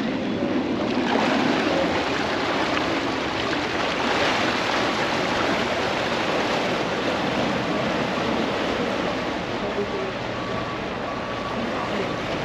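Water splashes and churns behind a passing boat.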